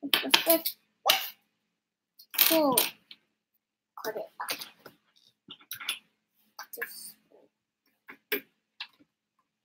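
Plastic toy bricks click and rattle on a table.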